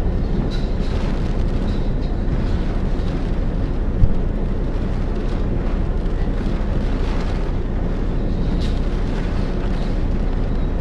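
Strong gusts of wind roar outdoors.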